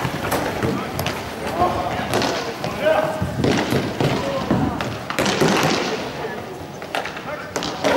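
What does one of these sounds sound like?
Inline skate wheels roll and scrape on a hard floor in a large echoing hall.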